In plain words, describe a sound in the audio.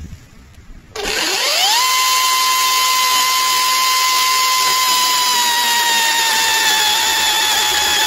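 An electric chainsaw whirs up quickly and runs with a steady high whine.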